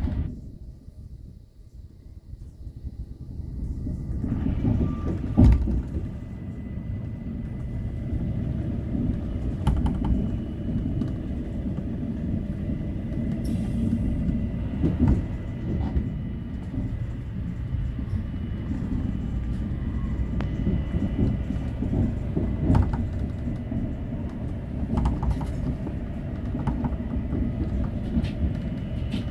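A train rumbles steadily along its track.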